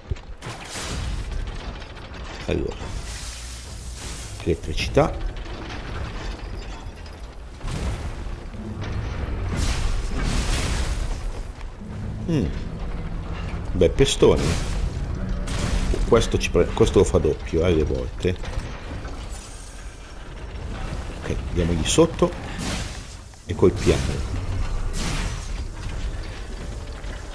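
Heavy metal wrecking balls slam into the ground with deep thuds.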